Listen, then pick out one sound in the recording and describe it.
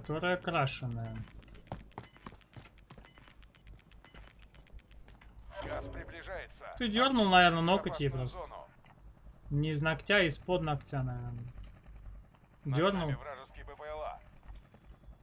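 A young man speaks with animation through a microphone, close up.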